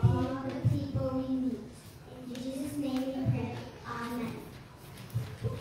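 A young girl speaks through a microphone in a large echoing hall.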